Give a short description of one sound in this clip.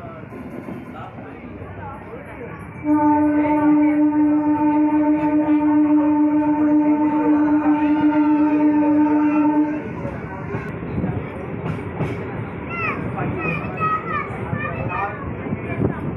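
A train rumbles along the tracks.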